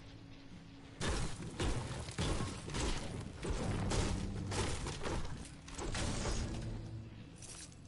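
A pickaxe chops repeatedly into a wooden wall.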